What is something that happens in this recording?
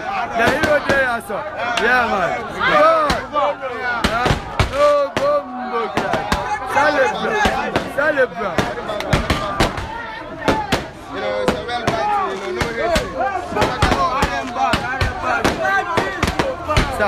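Several young men shout and chant along.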